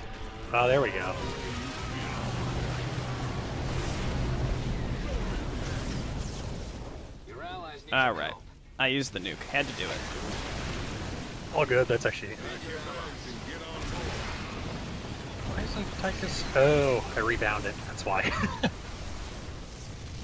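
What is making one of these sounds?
Explosions boom and weapons fire in a game battle.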